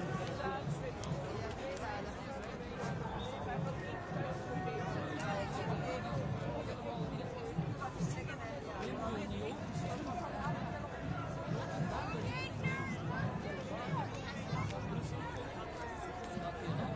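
Footsteps of many people shuffle along the pavement.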